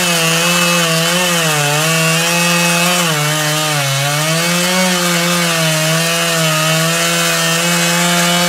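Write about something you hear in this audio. A chainsaw engine roars steadily, its pitch dipping and rising as it cuts into wood.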